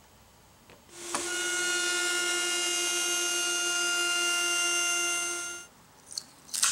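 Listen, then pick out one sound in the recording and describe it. A router spins with a loud, steady high whine as it cuts wood.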